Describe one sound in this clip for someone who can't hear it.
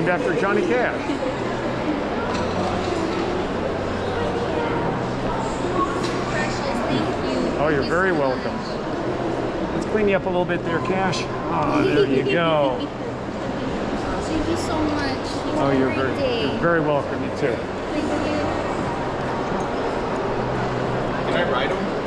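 Young people talk and laugh close by.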